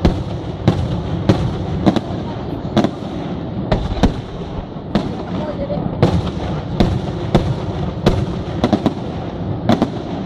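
Fireworks crackle and fizzle after each burst.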